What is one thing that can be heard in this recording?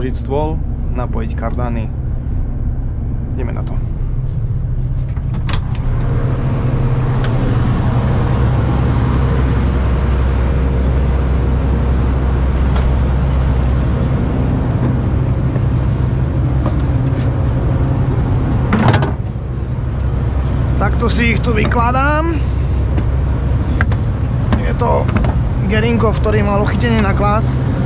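A large diesel engine runs with a steady low rumble close by.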